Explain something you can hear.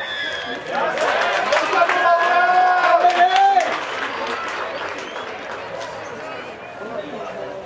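Young men shout and cheer loudly outdoors.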